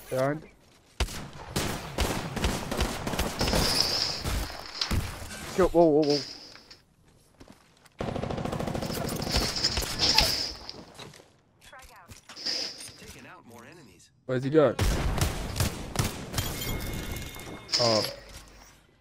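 Rapid gunfire bursts out in quick volleys.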